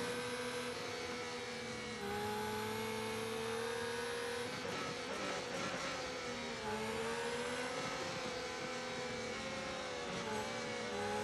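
A racing car engine screams at high revs and shifts pitch as it changes gear.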